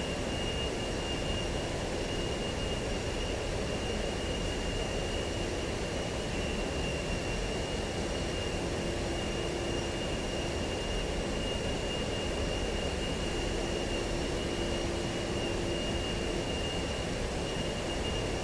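A jet engine roars steadily inside a cockpit, with rushing wind noise.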